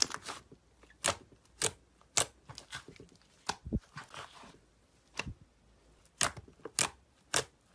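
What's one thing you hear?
Air bubbles in slime snap sharply as fingers press into it.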